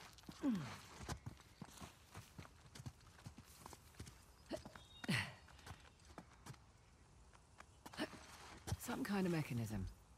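Footsteps patter quickly over grass and stone.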